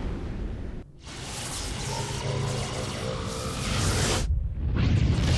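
An energy blast crackles and roars loudly.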